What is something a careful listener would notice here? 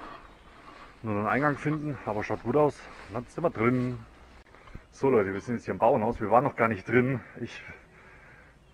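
A man talks close to the microphone with animation.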